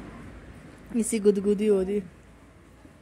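A young woman talks softly and playfully to a baby close by.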